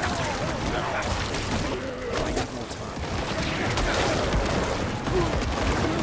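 Spell blasts and hits crash rapidly in a video game battle.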